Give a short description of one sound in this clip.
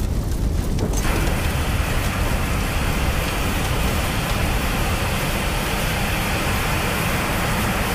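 A fire extinguisher sprays with a loud, steady hiss.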